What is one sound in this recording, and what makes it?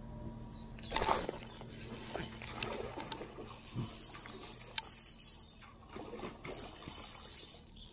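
A fishing reel clicks and whirs as its handle is wound.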